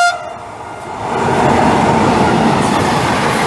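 A locomotive roars past close by.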